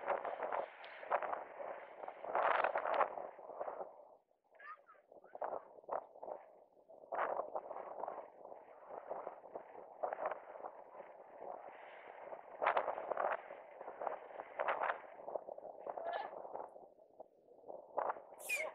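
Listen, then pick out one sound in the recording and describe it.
Inline skate wheels roll and scrape on smooth asphalt close by.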